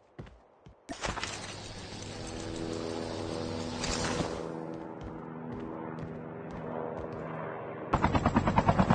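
A helicopter engine hums and whines while idling.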